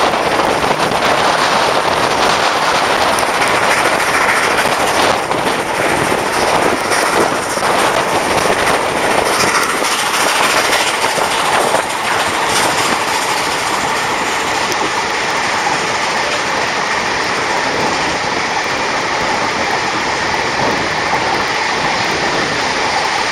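Wind rushes loudly past the open window of a moving train.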